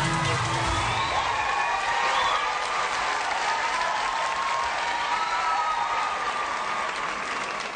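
A large crowd claps and applauds.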